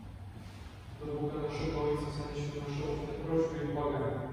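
Men sing together in a large, echoing room.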